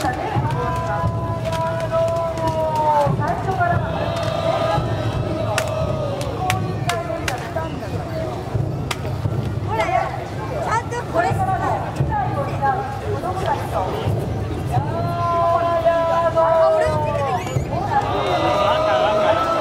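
A crowd of men and women chants together loudly outdoors.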